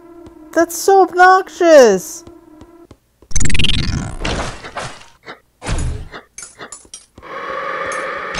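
A sword swishes through the air in quick strikes.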